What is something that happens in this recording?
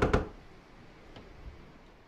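A fire crackles in a fireplace.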